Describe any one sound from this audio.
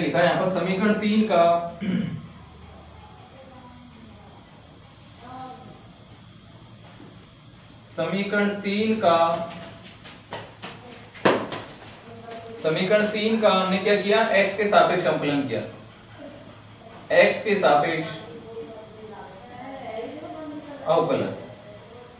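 A young man explains calmly, close to the microphone.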